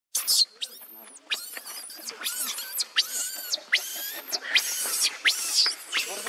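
A baby monkey screams in shrill, repeated shrieks close by.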